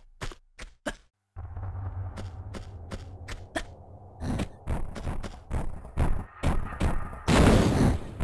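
Footsteps patter quickly on rocky ground.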